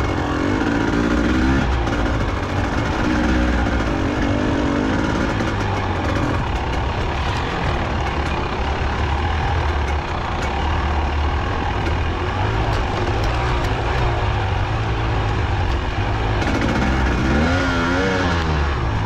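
Tyres crunch over loose gravel and rocks.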